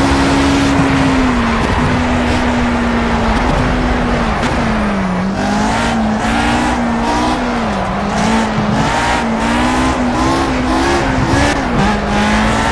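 A racing car engine slows and crackles as it brakes for corners.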